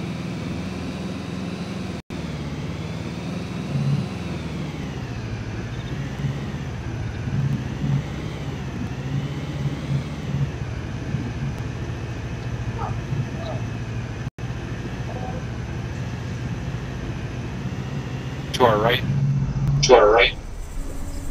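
A heavy armoured vehicle's engine rumbles and whines steadily as it drives.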